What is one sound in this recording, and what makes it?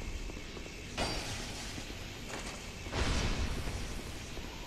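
A sword slashes and strikes a body with a heavy thud.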